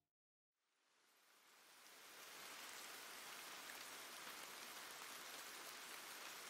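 Steady rain pours down, fading in and then holding at a constant hiss.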